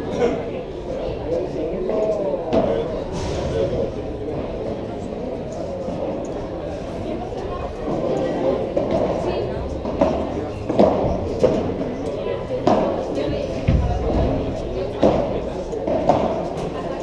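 Padel balls are hit with sharp pops of rackets, echoing in a large hall.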